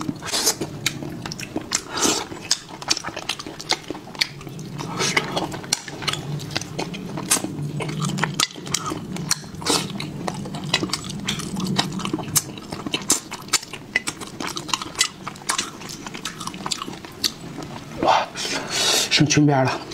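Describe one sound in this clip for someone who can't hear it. Wet food squelches and tears between fingers.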